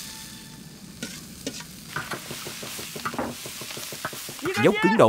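A ladle scrapes against a wok.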